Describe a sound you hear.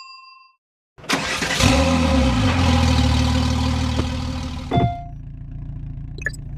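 A car engine starts and idles with a steady low rumble.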